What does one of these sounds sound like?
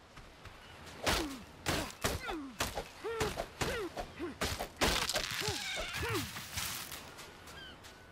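Leafy plants rustle as someone pushes through them.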